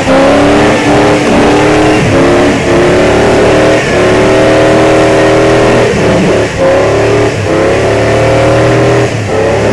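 A truck engine roars and revs up and down repeatedly.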